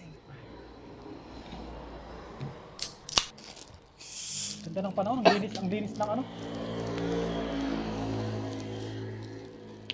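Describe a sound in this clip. Liquid glugs as a bottle is poured.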